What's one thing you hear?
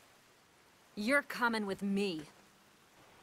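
A woman speaks firmly up close.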